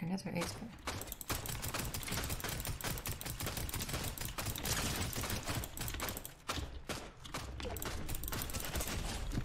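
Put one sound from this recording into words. Gunfire crackles rapidly in a game.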